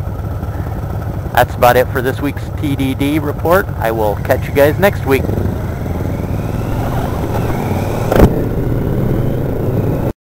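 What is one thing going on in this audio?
Wind rushes past the motorcycle.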